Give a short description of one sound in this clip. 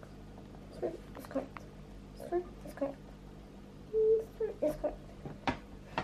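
A young girl speaks softly and close by.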